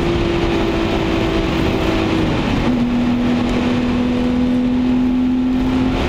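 A car engine hums steadily from inside the car and drops in pitch as the driver shifts gear.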